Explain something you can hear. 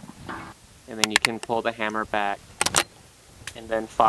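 A rifle's action clicks open and shut.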